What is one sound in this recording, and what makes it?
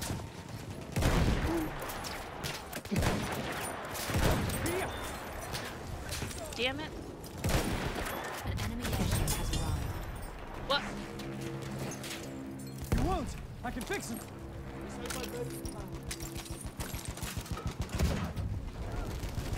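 A rifle fires in loud, sharp shots close by.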